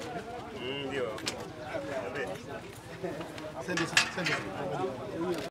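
Several men talk over each other close by, with agitation.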